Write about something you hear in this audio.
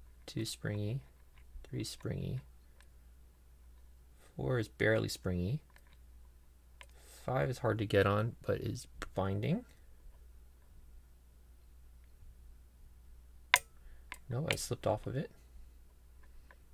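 A metal pick scrapes and clicks inside a lock.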